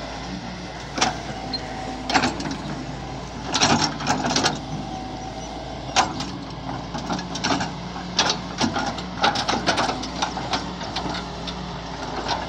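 An excavator bucket scrapes and thuds against dry ground, again and again.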